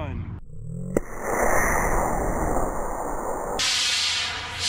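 A model rocket motor roars with a loud hiss as the rocket launches.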